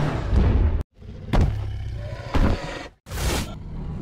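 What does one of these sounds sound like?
A large dinosaur roars with a deep, booming growl.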